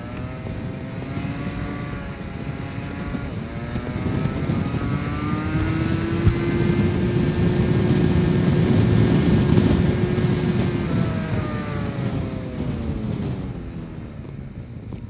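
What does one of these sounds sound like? Wind rushes past a moving rider.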